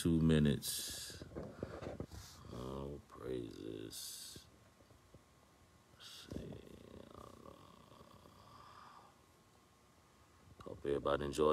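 A man speaks calmly and slowly close to a phone microphone, with long pauses.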